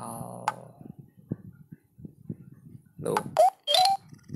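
Short bright chiming tones ring out one after another.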